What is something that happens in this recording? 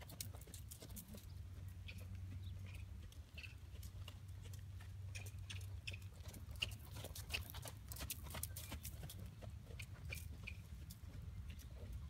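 A horse's hooves thud on soft dirt as it canters.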